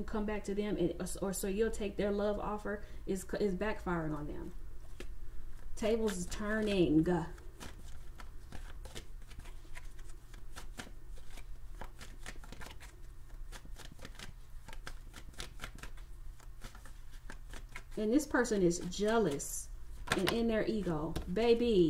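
Cards rustle and tap softly as hands handle them.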